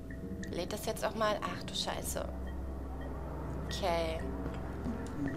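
A young woman speaks close to a microphone, in a lively tone.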